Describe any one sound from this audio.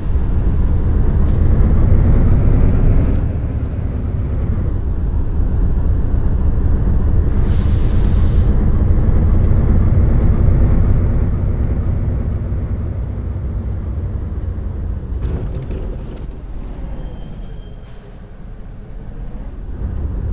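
A bus engine hums low and steady, rising and falling with speed.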